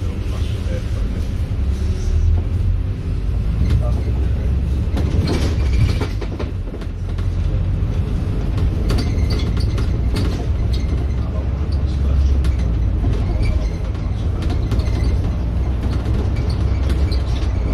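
Traffic passes by on the road outside.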